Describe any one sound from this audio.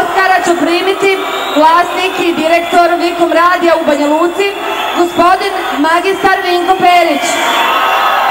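A woman sings loudly through a microphone over loudspeakers.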